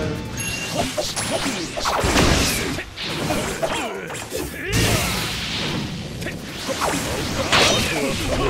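Punches and blasts thud and crackle in a fast fight.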